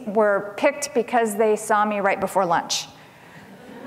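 A middle-aged woman speaks calmly through a microphone in a large echoing hall.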